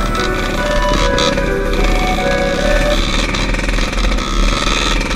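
A dirt bike engine revs loudly up close.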